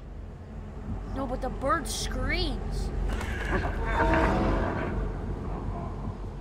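A young boy speaks excitedly close to a microphone.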